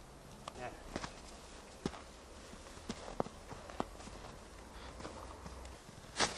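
Footsteps crunch in snow.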